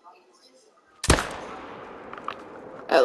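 A rifle shot cracks and echoes across open country.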